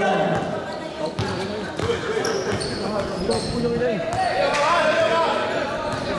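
A basketball bounces on a hard floor.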